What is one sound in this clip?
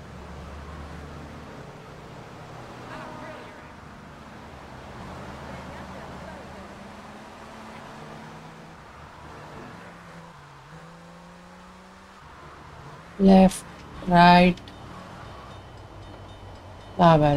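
A car engine hums and revs as a car drives along a street.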